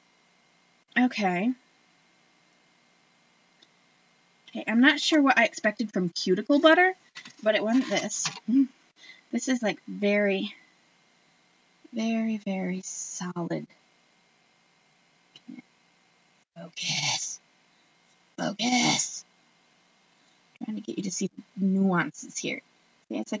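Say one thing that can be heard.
A woman talks close by, calmly and in short bursts.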